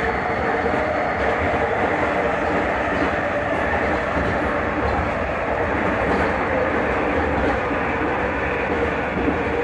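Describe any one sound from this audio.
A train hums and rumbles steadily along its track, heard from inside a carriage.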